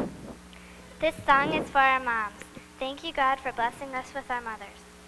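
A woman speaks into a microphone in a large echoing hall.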